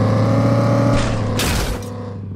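A truck crashes and rolls over with a loud bang.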